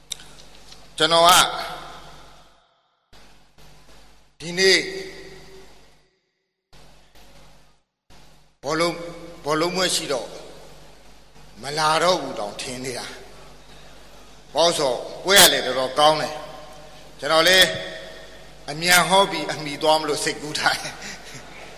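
An older man speaks with animation, heard through a microphone with a slight echo.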